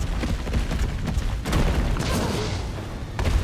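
A gun fires several shots.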